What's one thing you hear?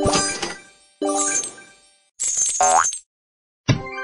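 Coins clink and jingle briefly.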